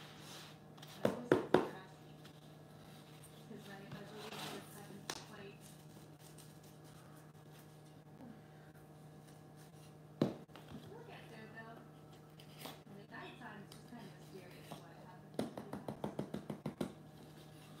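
Cardboard rustles and knocks as it is handled.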